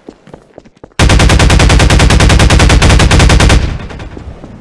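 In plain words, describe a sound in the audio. A gun fires in a fast, loud burst.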